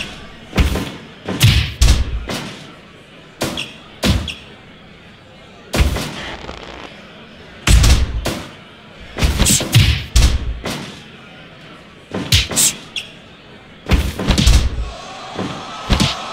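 Heavy blows and body slams thud again and again in a wrestling match.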